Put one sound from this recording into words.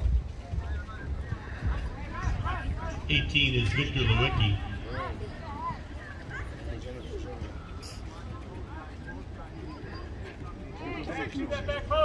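Men and women talk nearby outdoors.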